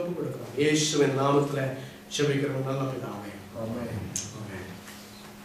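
A man speaks with feeling into a microphone in an echoing hall.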